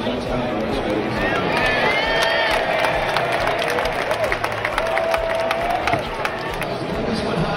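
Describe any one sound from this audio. A stadium crowd cheers and whistles loudly.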